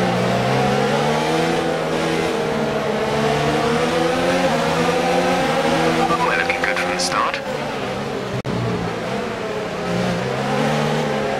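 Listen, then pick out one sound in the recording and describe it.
A racing car engine roars loudly, its pitch rising and falling as gears shift.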